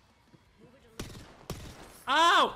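Gunfire cracks in a video game.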